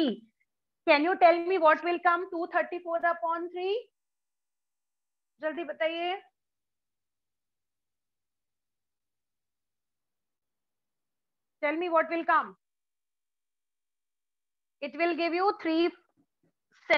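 A woman speaks calmly nearby, in short phrases with long pauses.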